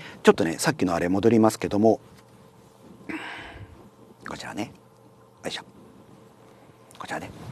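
A middle-aged man speaks calmly and clearly into a close microphone, in short bursts with pauses.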